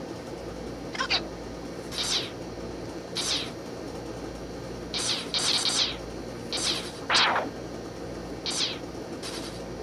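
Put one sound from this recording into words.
A game blaster fires short zapping shots again and again.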